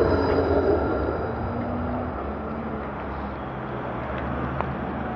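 A bus engine idles nearby with a low hum.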